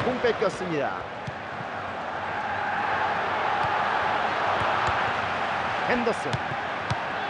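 A large stadium crowd roars steadily, swelling louder for a while.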